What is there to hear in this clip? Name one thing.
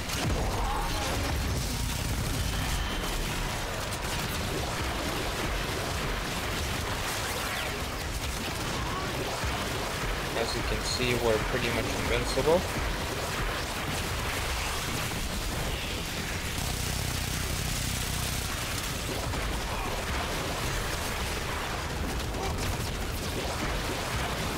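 Energy weapons fire in rapid crackling bursts.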